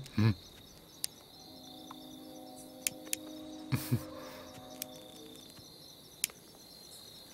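A lighter clicks several times.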